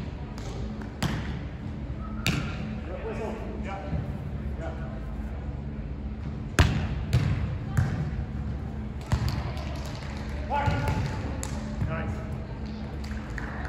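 A volleyball is bumped and set with dull thumps in a large echoing hall.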